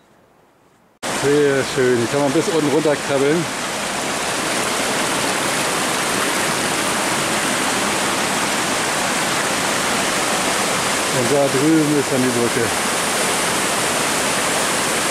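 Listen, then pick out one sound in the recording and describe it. A stream rushes loudly over rocks.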